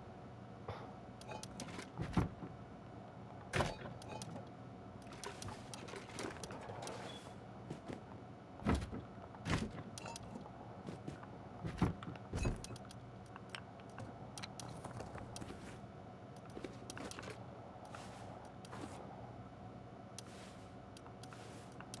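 Items clink and clatter as they are moved about.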